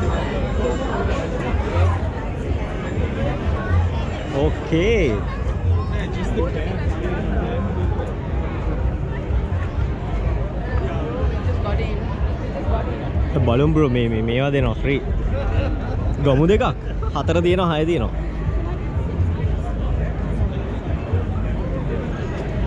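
A large crowd chatters outdoors all around.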